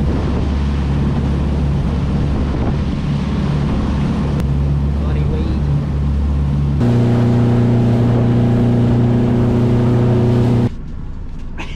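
A boat engine drones steadily outdoors in wind.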